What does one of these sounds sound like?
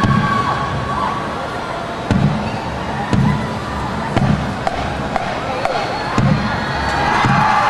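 Drums beat in a steady rhythm.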